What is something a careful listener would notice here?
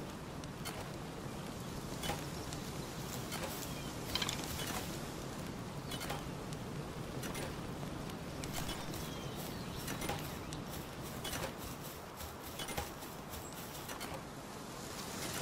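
Footsteps swish quickly through grass.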